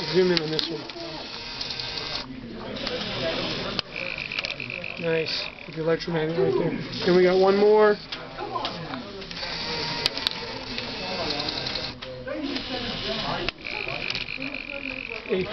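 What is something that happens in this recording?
A small electric motor whirs.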